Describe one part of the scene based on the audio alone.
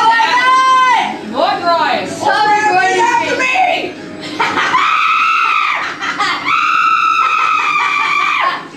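Teenage boys yell in long, drawn-out shouts.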